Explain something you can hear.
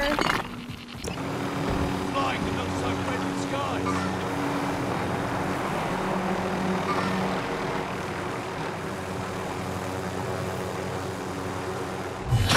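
A helicopter's engine and rotor whir steadily as it flies.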